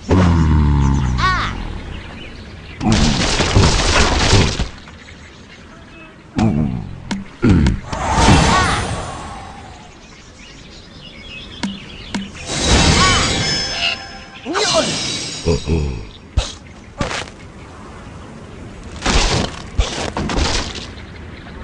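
Wooden blocks crash and clatter.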